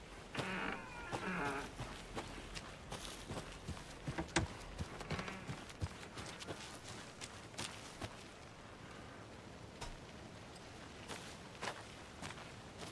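Footsteps crunch on a forest path.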